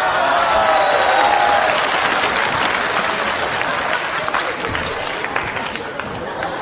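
An audience laughs loudly and claps.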